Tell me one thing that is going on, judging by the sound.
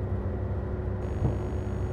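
Electronic static hisses and buzzes.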